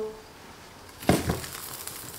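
A lid opens on a cooker.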